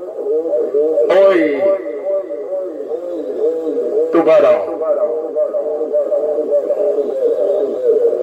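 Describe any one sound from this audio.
A radio loudspeaker gives out a steady stream of warbling, wobbling tones.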